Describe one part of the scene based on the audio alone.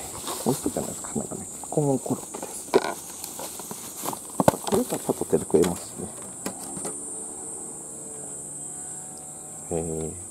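A plastic food container clicks and rattles as it is handled.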